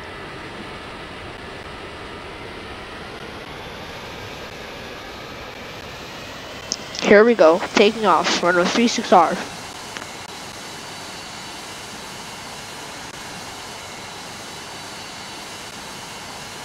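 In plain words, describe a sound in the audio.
A jet engine whines steadily as an airliner taxis.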